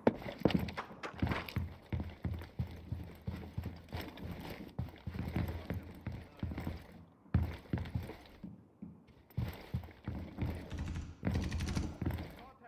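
Footsteps thud steadily across a wooden floor.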